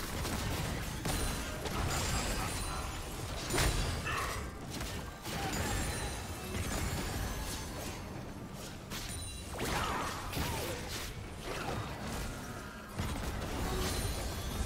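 Game characters clash with sharp hits.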